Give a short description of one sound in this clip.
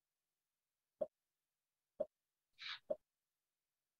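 Short beeps count down at an even pace.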